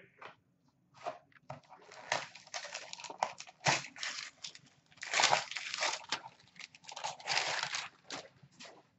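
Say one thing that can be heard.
A foil bag crinkles and rustles as hands handle it.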